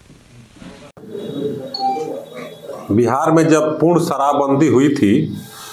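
A man speaks calmly and steadily, close by.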